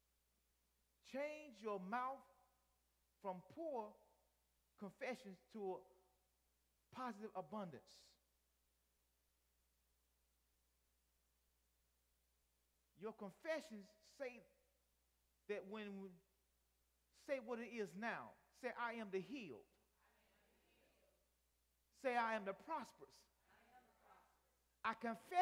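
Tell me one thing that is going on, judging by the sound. A man preaches with animation through a microphone, in short bursts with pauses.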